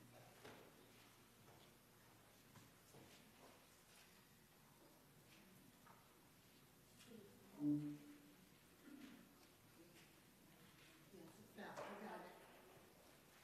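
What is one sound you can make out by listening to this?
An elderly woman speaks quietly from a distance in an echoing room.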